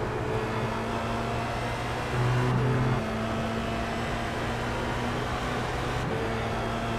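A racing car engine whines steadily at high revs, shifting pitch as gears change.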